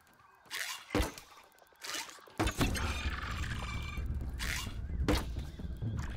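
A bowstring snaps as arrows are shot, several times.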